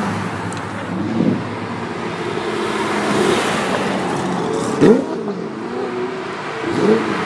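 A sports car engine revs sharply with a rising whine.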